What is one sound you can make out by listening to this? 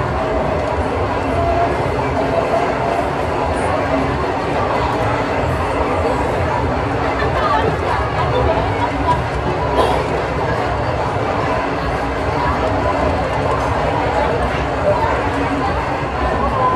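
A crowd of people chatters steadily in a large echoing hall.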